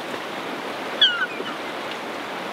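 A gull cries sharply overhead.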